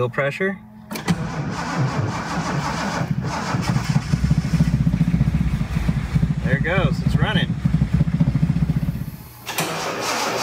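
A car engine starts and idles with a low, pulsing rumble.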